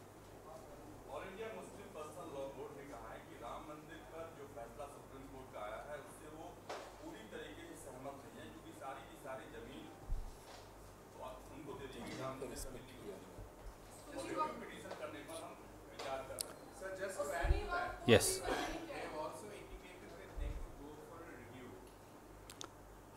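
A middle-aged man speaks calmly into microphones.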